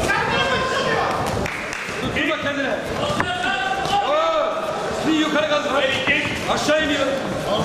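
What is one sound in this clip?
Punches thud against a fighter's body.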